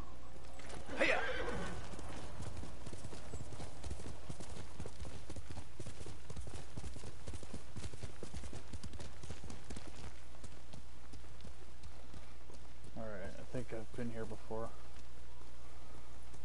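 Horse hooves thud quickly on a dirt path.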